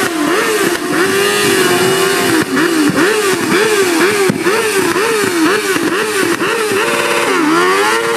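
A motorcycle's rear tyre screeches on asphalt.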